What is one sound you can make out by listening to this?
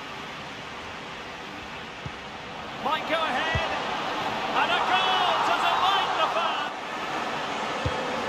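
A large crowd roars steadily and swells louder.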